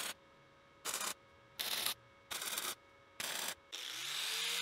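An electric welding arc crackles and buzzes in short bursts.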